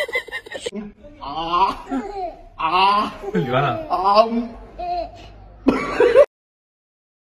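A baby giggles and laughs.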